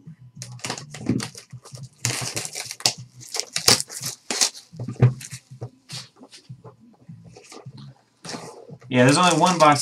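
Cardboard boxes slide and tap on a table.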